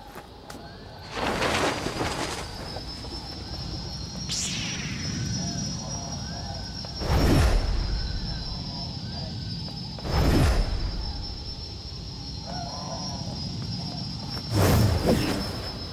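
A lightsaber hums steadily.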